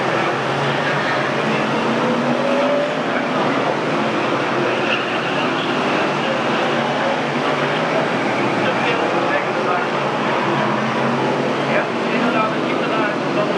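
Racing car engines roar and drone steadily.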